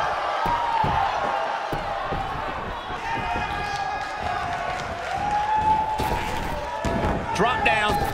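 Bodies slam heavily onto a wrestling mat.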